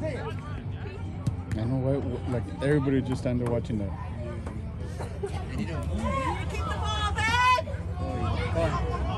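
A crowd of spectators cheers and calls out from the sideline.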